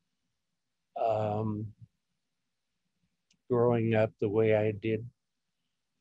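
An elderly woman speaks slowly over an online call, in short bursts with pauses.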